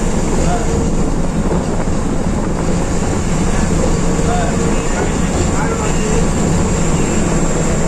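An engine hums steadily with road rumble, heard from inside a moving vehicle.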